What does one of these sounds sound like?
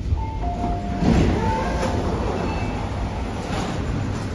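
Train doors slide open with a whoosh.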